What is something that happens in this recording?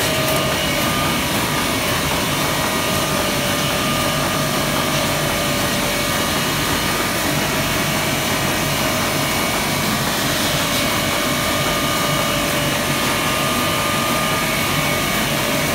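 A sheet-fed offset printing press runs with a steady mechanical clatter and hum.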